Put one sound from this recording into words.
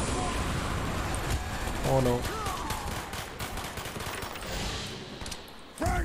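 Two guns fire rapid bursts of shots.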